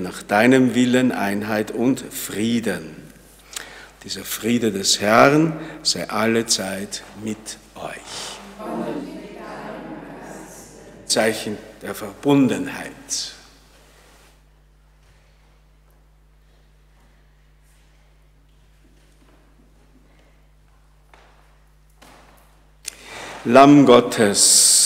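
A middle-aged man speaks calmly through a microphone in an echoing room.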